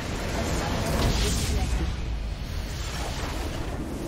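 A crystal shatters with a loud burst.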